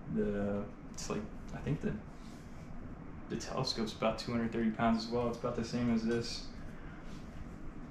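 Telescope parts clack and knock as they are handled.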